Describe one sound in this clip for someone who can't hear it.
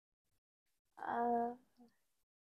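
A young boy speaks briefly.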